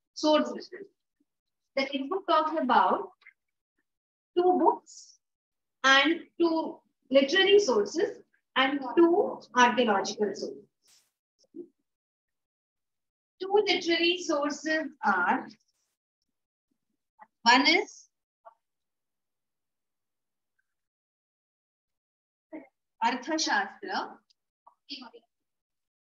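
A woman speaks calmly into a nearby microphone, with pauses.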